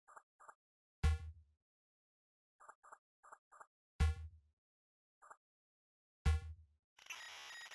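A deep electronic thud sounds as a menu choice is refused.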